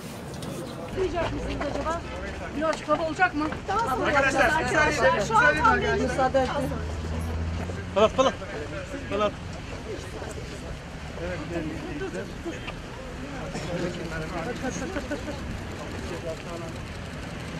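A crowd of people talk and call out close by, outdoors.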